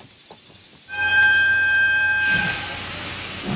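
A steam locomotive whistle blows loudly.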